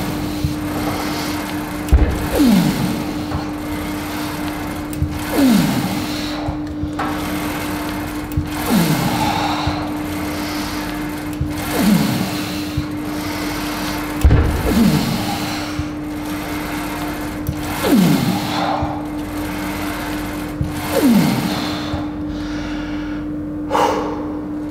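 A leg press machine's weight sled rumbles and clanks with each repetition.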